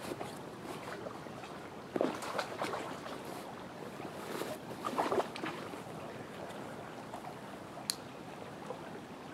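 A creek flows and ripples gently over its bed.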